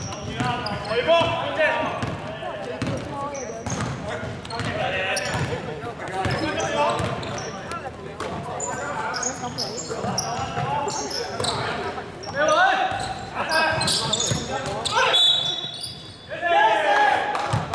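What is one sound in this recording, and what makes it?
Young players shout and call out to each other across the hall.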